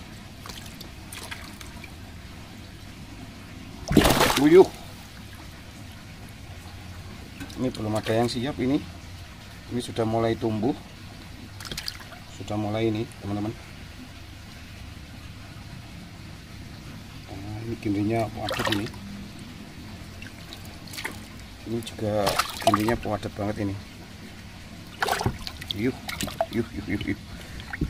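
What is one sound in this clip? Water splashes and laps as hands move through it.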